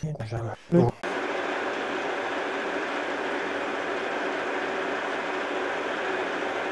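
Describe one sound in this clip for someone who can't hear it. A milling machine spindle runs with a steady whirring hum.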